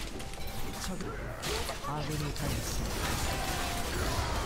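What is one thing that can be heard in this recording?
Video game spell effects whoosh and clash.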